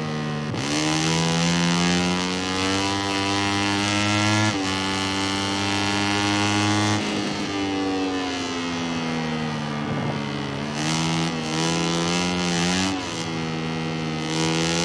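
A motorcycle engine roars loudly, rising in pitch as it speeds up and shifting gears.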